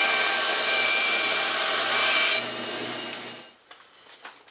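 A band saw whirs as it cuts through wood.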